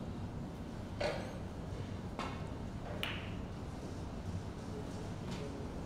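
Snooker balls click sharply against each other.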